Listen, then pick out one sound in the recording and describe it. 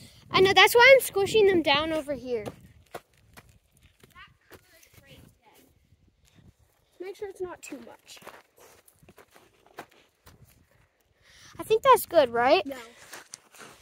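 A young child calls out excitedly close by.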